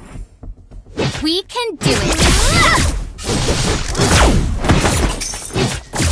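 Fantasy combat effects of magic blasts and sword hits burst in quick succession.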